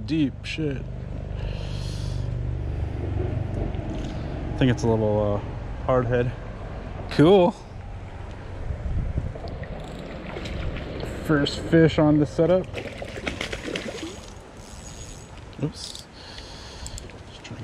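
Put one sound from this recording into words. A fishing reel clicks and whirs as its handle is cranked.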